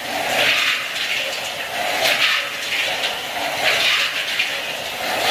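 Peanuts tumble and rattle in a rotating stainless steel drum.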